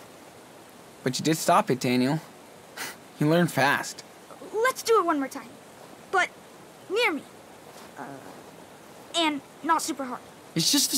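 A young boy answers eagerly from a short distance.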